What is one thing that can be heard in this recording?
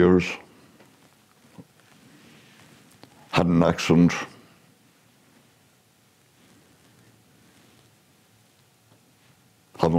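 An elderly man speaks slowly and haltingly, close to a microphone, with long pauses.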